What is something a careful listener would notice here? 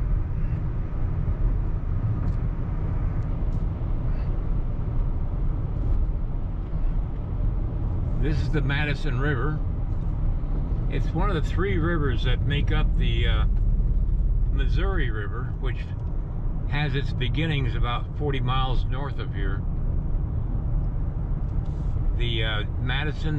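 A car drives along a road with a steady low rumble of tyres and engine.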